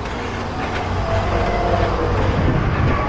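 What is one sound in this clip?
A bus engine rumbles as the bus approaches.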